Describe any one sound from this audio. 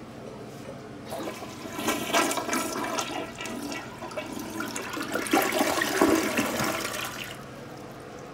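A toilet flushes with rushing, swirling water.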